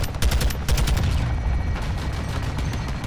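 An explosion booms loudly.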